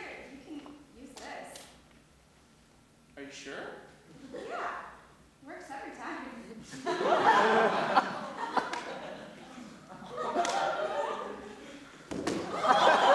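A young man speaks with feeling in a large echoing hall.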